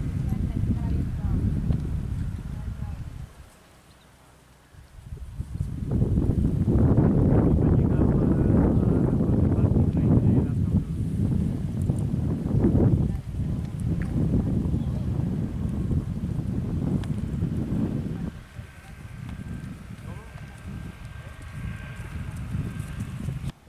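A horse's hooves thud on dry dirt at a canter.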